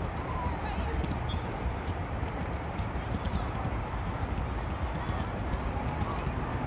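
Distant players shout faintly across an open field.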